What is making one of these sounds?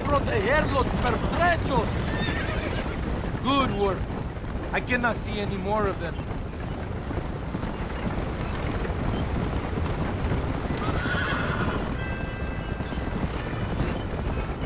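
Wagon wheels rumble and rattle over a dirt track.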